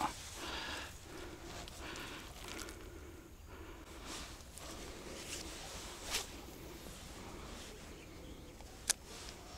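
Wind blows softly across open water outdoors.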